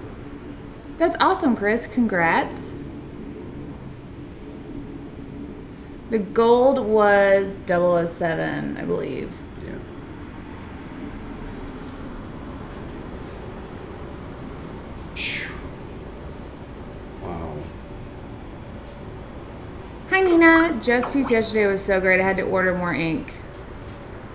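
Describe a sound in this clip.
A woman talks with animation, close to a microphone.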